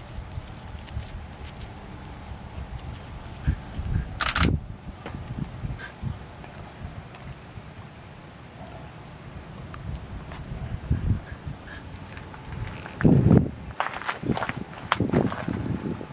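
Paws scuff on sandy ground.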